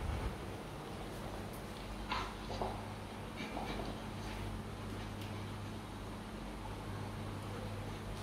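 A large dog pants rapidly nearby.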